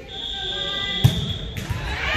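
A volleyball is struck with a sharp slap in a large echoing hall.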